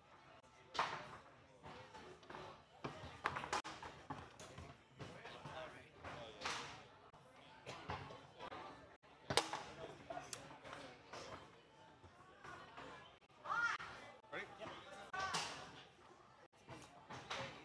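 Foosball rods clack and a ball knocks sharply against the table.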